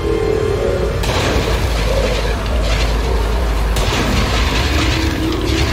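Laser weapons fire in sharp, hissing bursts.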